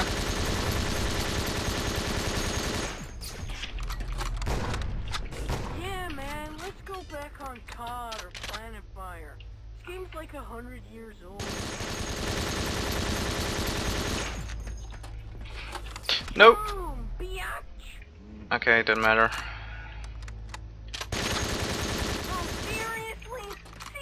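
A rapid-fire gun shoots in bursts.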